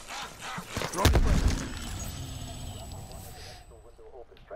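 A grenade explodes with a loud boom and a rumbling tail.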